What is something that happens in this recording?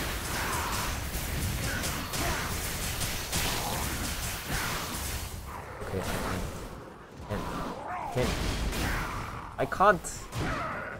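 Spell effects crash and whoosh in a fast fight.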